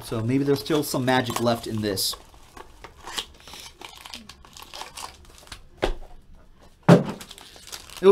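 Plastic wrapping crinkles as a pack is torn open.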